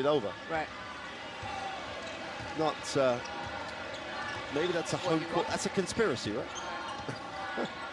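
A large crowd murmurs and cheers in a big echoing arena.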